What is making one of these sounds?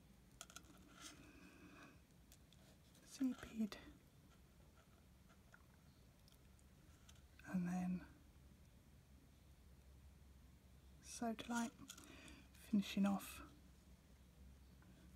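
Tiny metal beads click softly against a needle.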